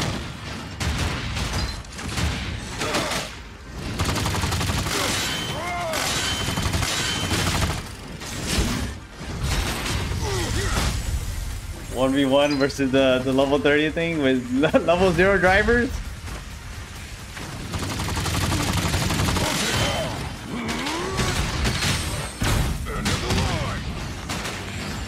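Metal weapons clang and strike.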